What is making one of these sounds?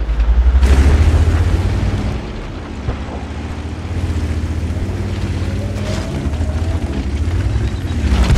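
A tank's tracks clank and squeak as it rolls.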